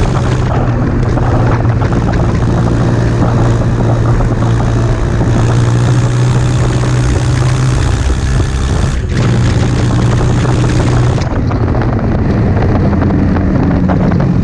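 A motorcycle engine hums steadily and shifts in pitch as the bike rides along a road.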